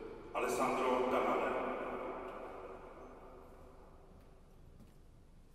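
A pipe organ plays a loud chord that dies away slowly, echoing through a large hall.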